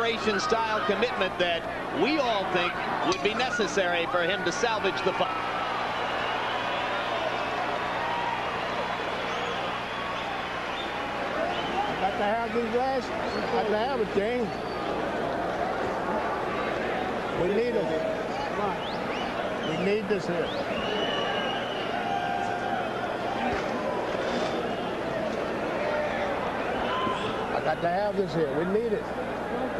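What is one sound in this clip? A large crowd roars and murmurs in a big arena.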